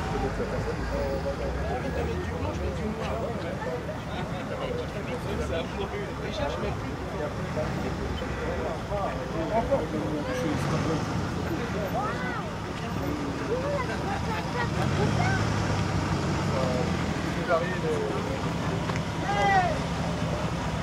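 A car engine idles and rumbles as the car rolls slowly forward.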